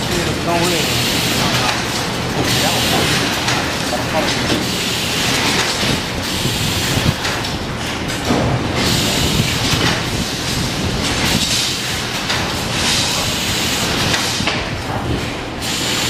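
Metal parts clink and rattle as they are handled.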